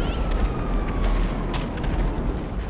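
A punch lands with a dull thud.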